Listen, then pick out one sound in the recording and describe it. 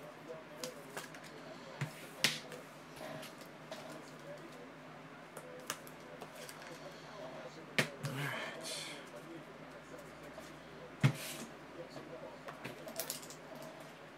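Trading cards tap and slide on a table.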